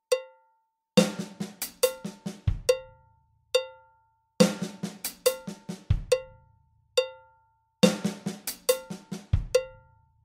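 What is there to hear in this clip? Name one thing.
Electronic drum pads are struck with sticks in quick bursts of beats.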